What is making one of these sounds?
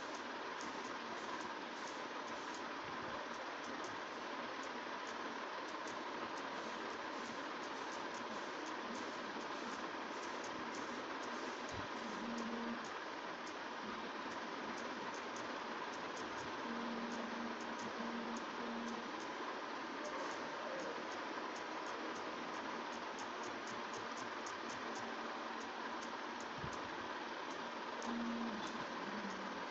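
Phone keys click softly with each tap in quick, uneven bursts.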